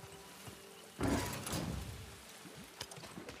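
Water gushes and splashes nearby.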